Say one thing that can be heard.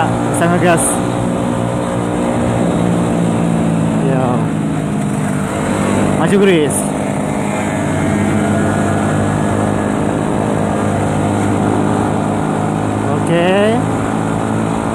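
A motorcycle engine revs up sharply a few times.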